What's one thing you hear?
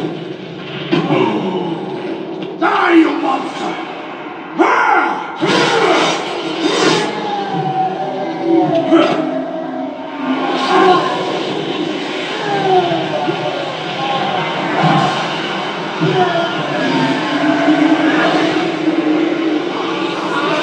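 A monster roars and growls deeply.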